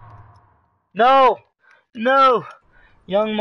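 A man speaks loudly into a microphone.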